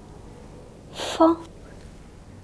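A woman breathes out sharply close by.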